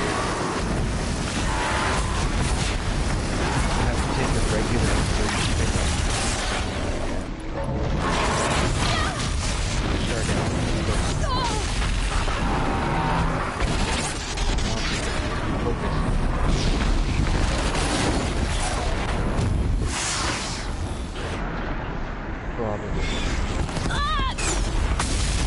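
Flames roar and burst in loud explosions.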